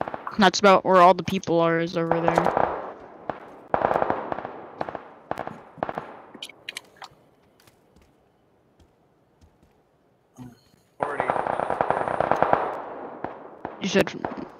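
Gunshots crack and echo in short bursts.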